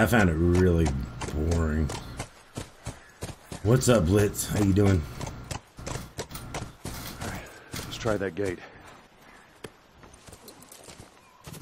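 Horse hooves clop on the ground.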